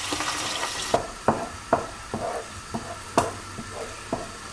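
A wooden spoon knocks and scrapes against a pan.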